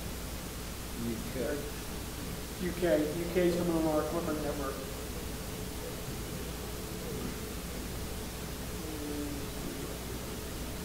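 A man speaks calmly, presenting.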